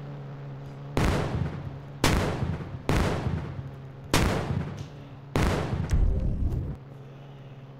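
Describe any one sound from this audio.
Rocket blasts explode loudly, one after another.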